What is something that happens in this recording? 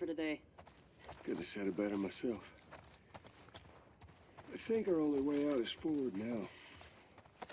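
A man answers calmly.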